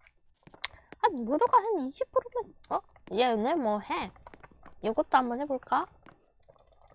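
A young boy talks with animation close to a headset microphone.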